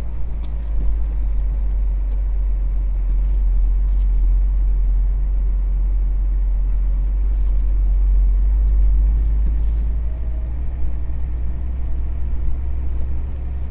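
A vehicle's engine hums low and steady while driving.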